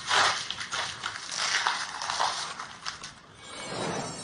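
Paper rustles and tears close by.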